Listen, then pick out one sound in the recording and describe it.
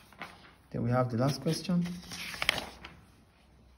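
A sheet of paper rustles as it is turned over.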